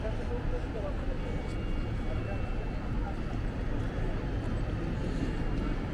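A bus idles nearby.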